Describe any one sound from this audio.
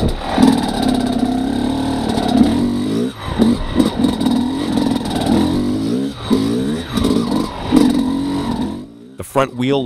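A two-stroke dirt bike engine burbles and revs at low speed on a trail.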